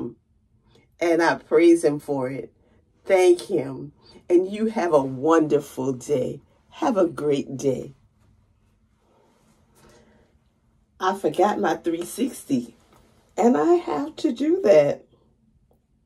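A middle-aged woman talks close by, animated and cheerful.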